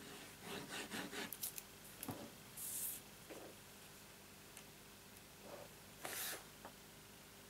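Sheets of card stock rustle and slide under hands.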